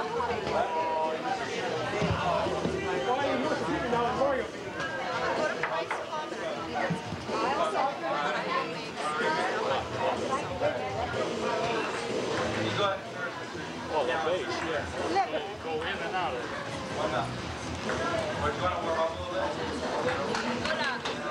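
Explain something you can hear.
A crowd of men and women chatters and laughs outdoors.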